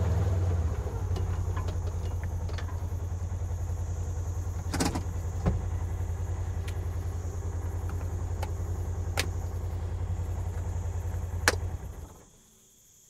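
A motorcycle engine idles with a low, steady throb, then cuts off.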